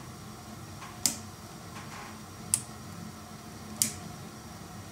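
Pliers click sharply against a metal part.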